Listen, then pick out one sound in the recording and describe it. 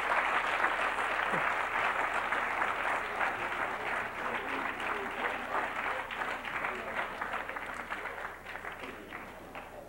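An audience applauds in a room with a slight echo, slowly fading.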